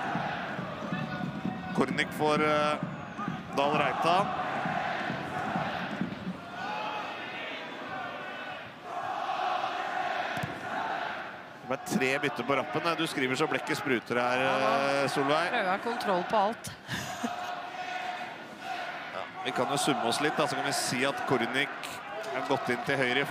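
A large stadium crowd sings and chants steadily.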